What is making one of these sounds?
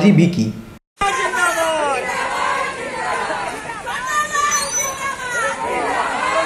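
A crowd of marchers chants and shouts outdoors.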